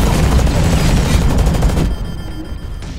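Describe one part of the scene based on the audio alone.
Heavy guns fire in rapid, loud bursts.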